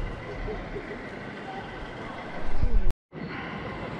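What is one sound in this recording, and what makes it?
A model train rumbles along its tracks.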